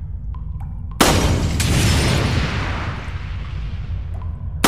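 A barrel explodes with a loud boom that rumbles away.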